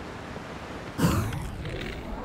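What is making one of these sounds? A figure lands on the ground with a thud.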